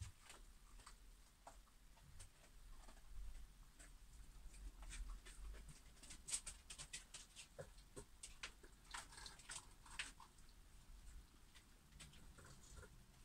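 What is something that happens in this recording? A paintbrush taps and dabs softly on a canvas.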